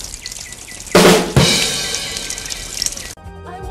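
An egg bursts with a sudden splatter.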